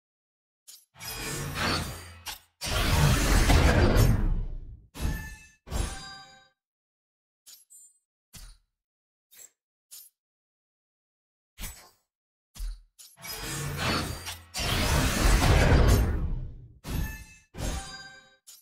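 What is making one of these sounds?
A loud swelling whoosh rises and fades.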